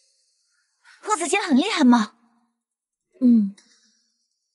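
A young woman speaks close by.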